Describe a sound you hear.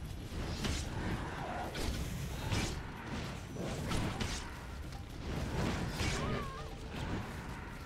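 Magic blasts and blows strike sharply during a fight.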